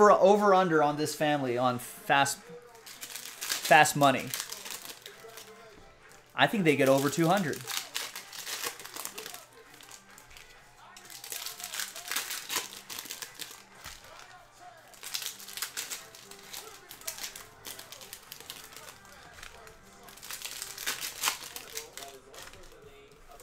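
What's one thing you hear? Foil card packs crinkle and tear as hands open them.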